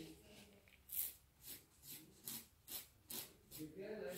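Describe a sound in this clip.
A metal tool scrapes rhythmically against a fingernail.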